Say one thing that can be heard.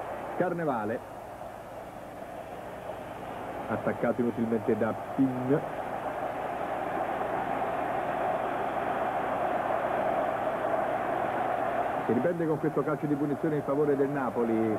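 A large crowd roars steadily in a stadium, swelling louder.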